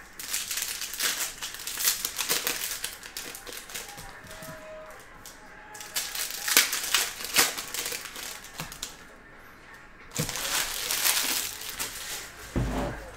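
Card wrappers crinkle and rustle as they are torn open.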